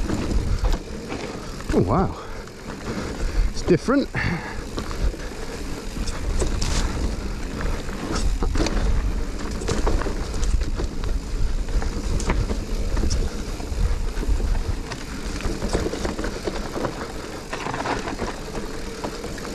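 A bicycle frame rattles and clanks over bumps.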